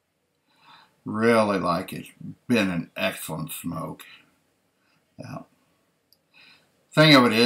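An older man speaks with animation close to a microphone.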